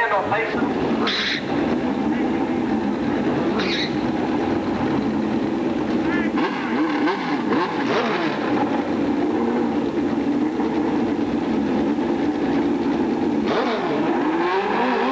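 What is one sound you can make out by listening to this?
A motorcycle engine idles loudly close by.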